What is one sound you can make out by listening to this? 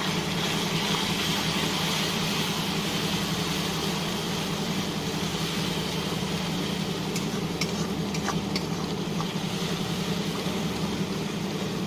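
A spatula scrapes and stirs in a pan.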